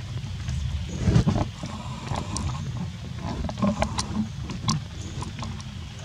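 A small monkey shuffles and rustles about on stone and dry leaves.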